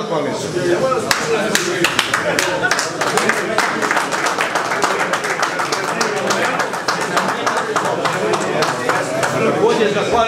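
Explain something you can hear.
A crowd of people applauds.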